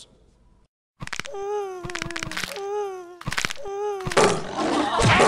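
A young man wails and sobs.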